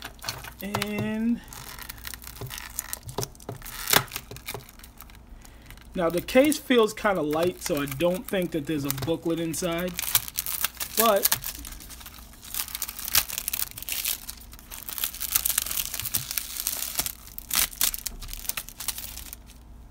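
Plastic wrap crinkles and rustles as it is torn and peeled off.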